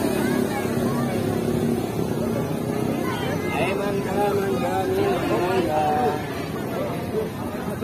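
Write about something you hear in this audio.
A street crowd murmurs outdoors.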